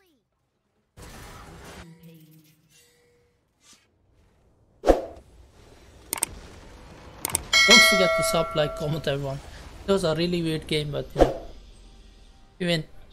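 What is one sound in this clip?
Magic spells whoosh and crackle in short bursts.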